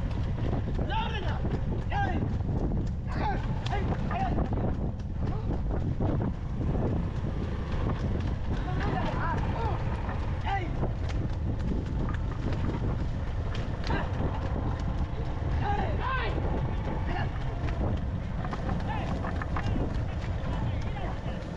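Cart wheels rumble and rattle over a dirt road.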